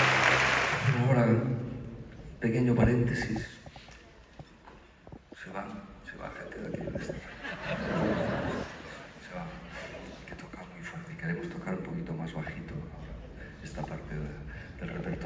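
An elderly man speaks into a microphone over loudspeakers in a large echoing hall.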